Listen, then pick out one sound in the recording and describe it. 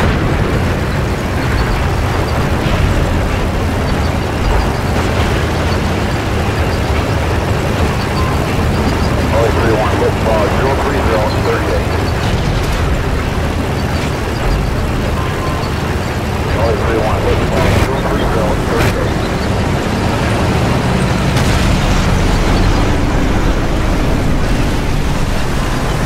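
A tank engine rumbles steadily as the tank drives along.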